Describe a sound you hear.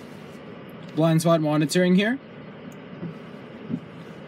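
A plastic button clicks as it is pressed.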